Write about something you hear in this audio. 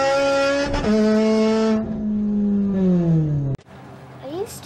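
A car engine revs, heard from inside the cabin.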